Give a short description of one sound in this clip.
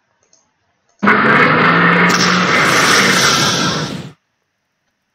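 A tank gun fires with a long, rumbling blast.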